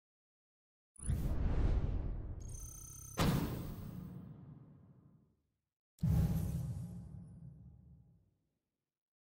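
A deep booming whoosh swells and fades, several times.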